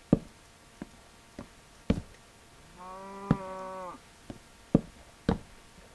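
Wooden blocks knock dully as they are placed, one after another.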